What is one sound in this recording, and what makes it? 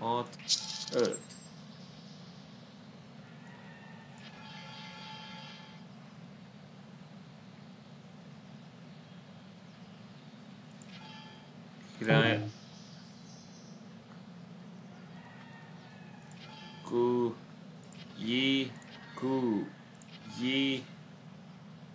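A young man speaks briefly and calmly into a microphone, close by.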